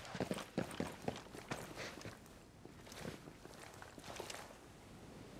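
Footsteps shuffle on hard ground nearby.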